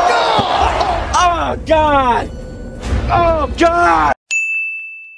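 A man cries out in anguish, sobbing loudly.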